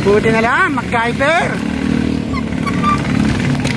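A motorcycle engine hums steadily down the street.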